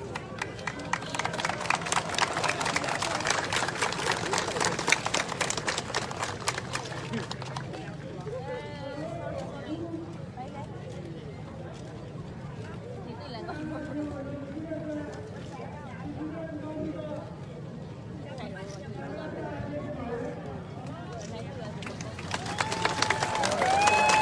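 Several people chant and shout together nearby.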